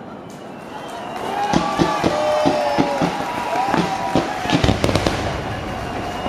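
Fireworks whistle and boom overhead.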